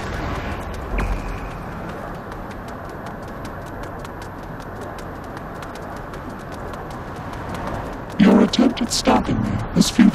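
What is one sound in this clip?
Fast footsteps patter on pavement.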